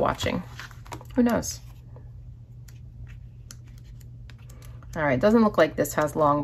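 Stiff paper pages rustle and flap as they are flipped.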